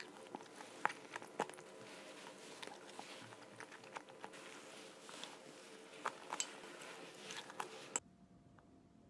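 A plastic spoon scrapes and clicks against a bowl.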